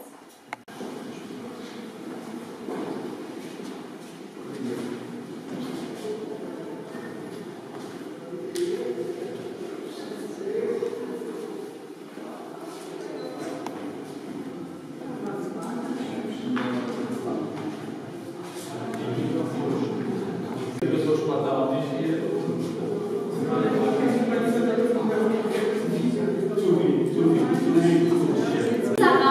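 A crowd of adult visitors murmurs and chatters, echoing in a large room.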